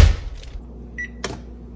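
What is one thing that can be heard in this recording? An oven control panel beeps once.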